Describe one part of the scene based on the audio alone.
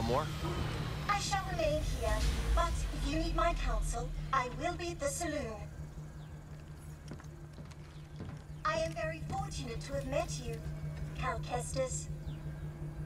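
A robot speaks in a clipped, electronic-sounding voice.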